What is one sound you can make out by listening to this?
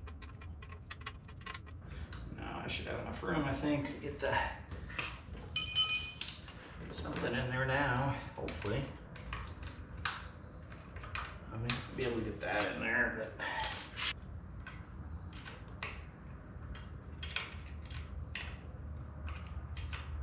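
Metal tools click and clink against a wheel.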